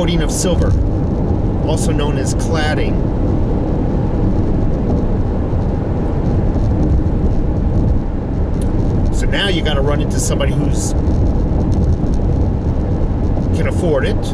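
A car's engine and tyres rumble steadily on the road.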